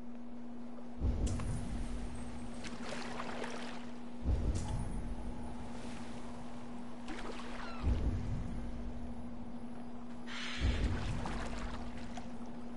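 Oars splash in the water as a small boat is rowed.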